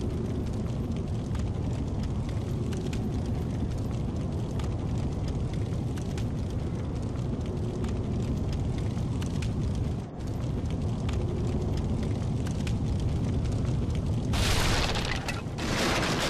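Armoured footsteps clank steadily on a stone floor.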